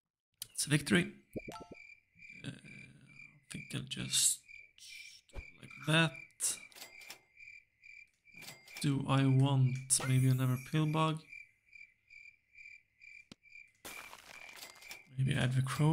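Short electronic game sound effects blip and chime.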